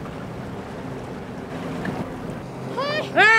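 Waves slosh and splash against a boat's hull.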